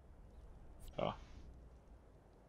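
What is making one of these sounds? A short electronic notification chime sounds.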